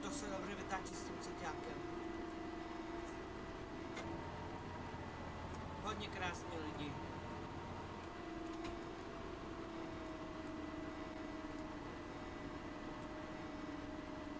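A bus's turn signal ticks rhythmically.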